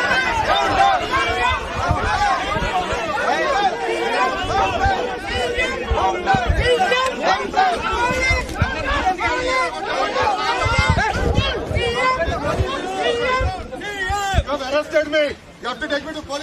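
A large crowd of men shouts and chatters excitedly close by.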